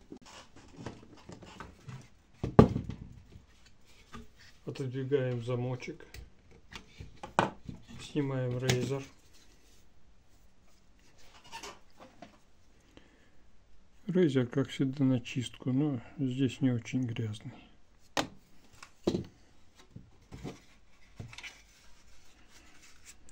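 A hard plastic object clicks and knocks against a table.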